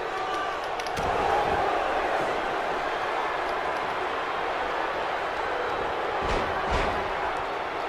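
Heavy thuds of bodies slam onto a wrestling ring mat.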